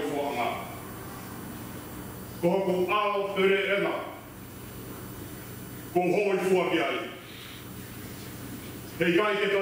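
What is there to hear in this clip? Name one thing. A man speaks slowly and clearly into a microphone, in a room with a slight echo.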